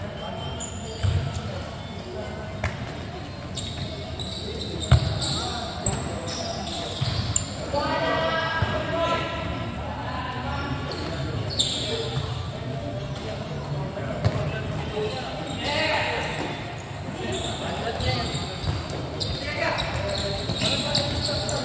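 A ball thumps on a hard court in a large echoing hall.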